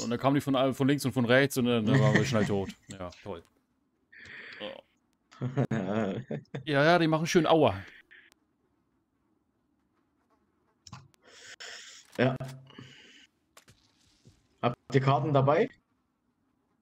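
A young man talks with animation over a game's voice chat.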